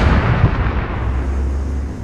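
An explosion booms and rolls away.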